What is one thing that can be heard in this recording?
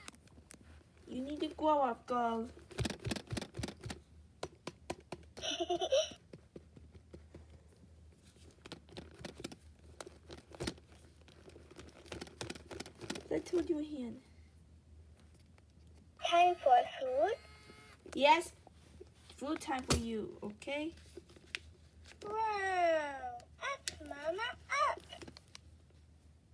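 A talking baby doll babbles and giggles in a high, childlike electronic voice.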